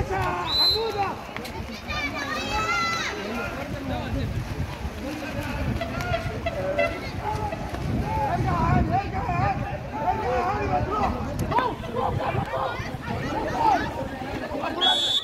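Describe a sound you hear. Water polo players splash and thrash in a swimming pool.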